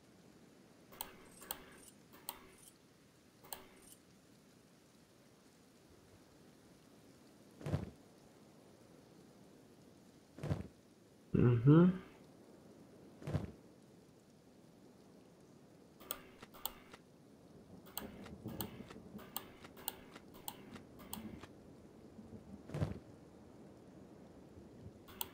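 Soft clicks sound as items are moved around.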